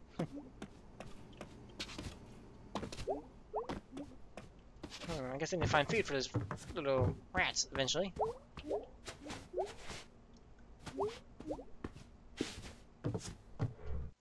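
Quick light footsteps patter across a wooden floor and up stairs.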